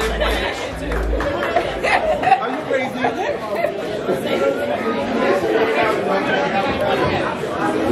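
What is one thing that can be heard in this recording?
A crowd chatters and cheers loudly in an echoing room.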